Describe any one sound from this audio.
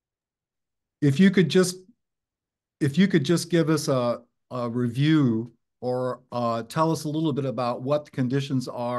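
An older man speaks with animation over an online call.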